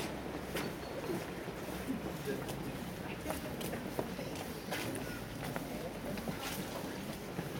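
Footsteps scuff on a cobbled street.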